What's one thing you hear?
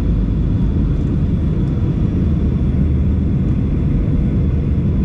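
Turbofan engines of a jet airliner roar low and steady, heard from inside the cabin on approach.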